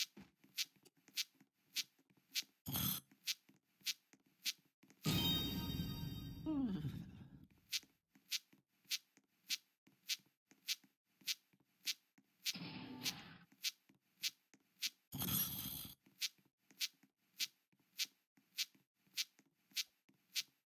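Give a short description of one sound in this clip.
Footsteps tap in a quick, steady rhythm.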